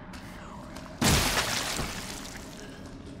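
A handgun fires a loud shot.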